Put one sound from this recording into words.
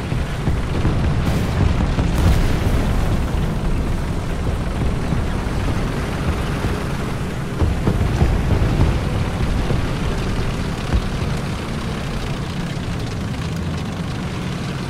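A tank engine rumbles steadily as tracks clatter along.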